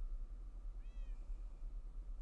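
A cat meows in a game.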